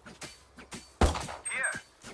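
A pistol fires a single sharp shot.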